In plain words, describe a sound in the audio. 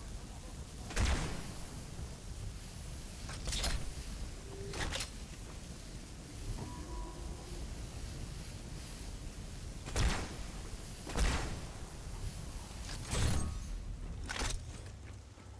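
A rifle fires loud sharp shots at uneven intervals, each trailing off in a short echo.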